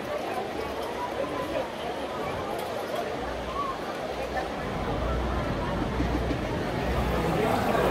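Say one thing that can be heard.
Waves break on a beach.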